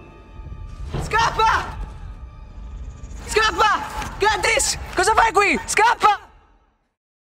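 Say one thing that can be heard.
A young woman cries out in distress close by.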